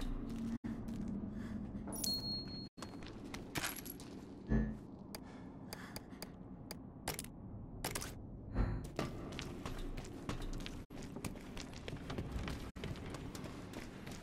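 Footsteps crunch over rubble and debris.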